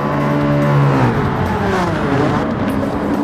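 A racing car engine drops in pitch as a car passes close by and fades.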